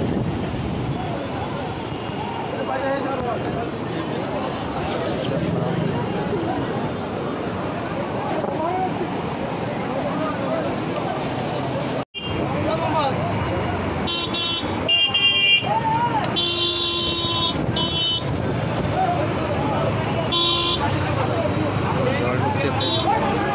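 A crowd of men and women talk loudly and all at once outdoors.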